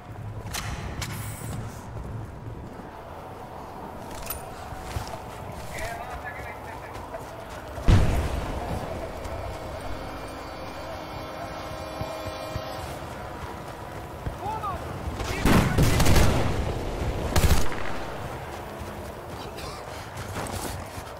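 Wind howls steadily in a snowstorm.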